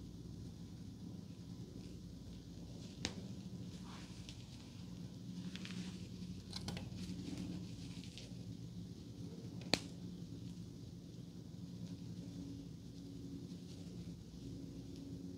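Hair rustles softly as fingers part it close by.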